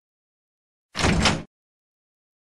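A heavy door creaks open.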